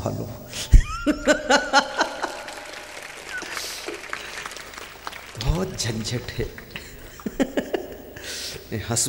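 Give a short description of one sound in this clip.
A man laughs into a microphone.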